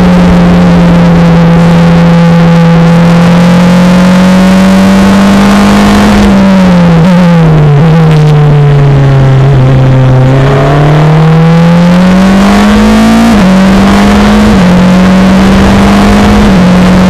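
A four-cylinder Formula Renault 2.0 race car engine screams at high revs, heard close from the cockpit.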